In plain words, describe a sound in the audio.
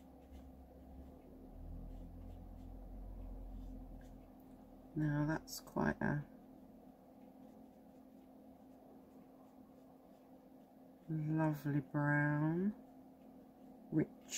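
A brush lightly strokes wet paint onto paper.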